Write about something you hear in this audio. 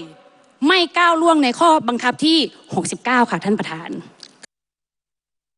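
A woman speaks with animation into a microphone.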